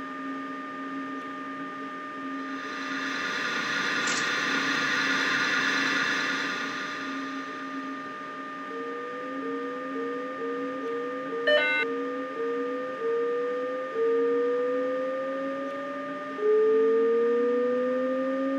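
A train's electric motors hum steadily while it runs along the track.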